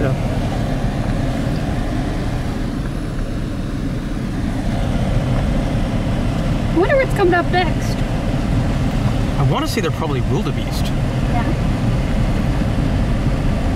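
A car rumbles steadily as it drives along a dirt road.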